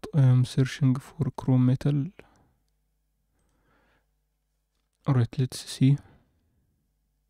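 A young man speaks calmly and close to a microphone, in short bursts.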